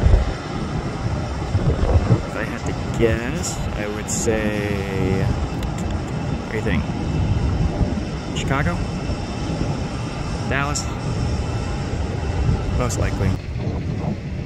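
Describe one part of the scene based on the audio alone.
A jet airliner's engines rumble steadily as it taxis nearby.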